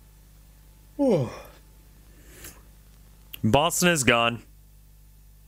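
A man makes loud sounds with his voice close to a microphone.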